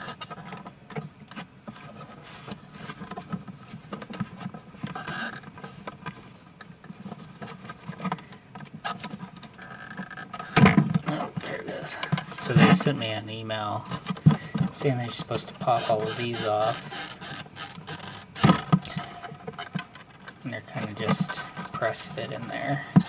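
Metal parts click and rattle as they are handled close by.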